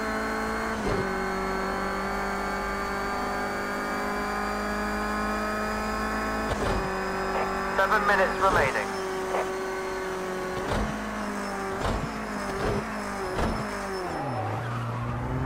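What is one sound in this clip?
A racing car engine roars at high revs, shifting gears and slowing down at the end.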